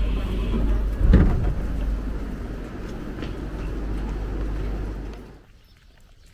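Footsteps shuffle out onto a platform.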